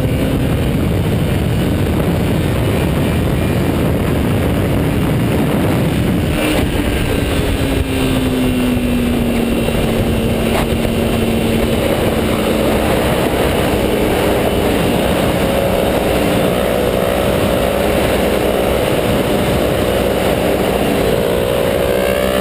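Wind roars loudly against the rider at speed.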